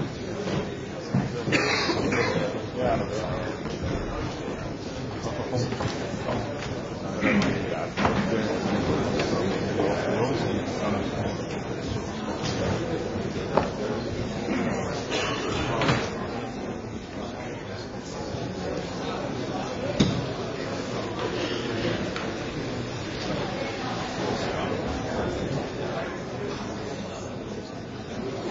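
A crowd of people murmurs and chatters throughout.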